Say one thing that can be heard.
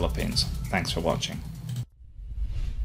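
A man speaks to a microphone close up.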